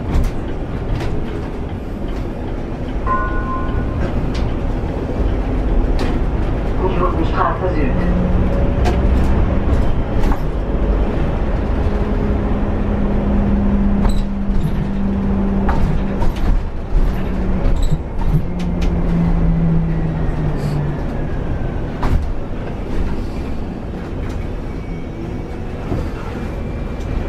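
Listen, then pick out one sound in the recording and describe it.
The bus body rattles and clicks as it drives over the road.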